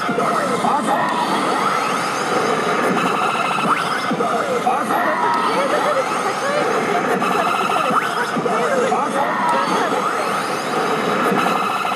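Buttons on a slot machine click as they are pressed.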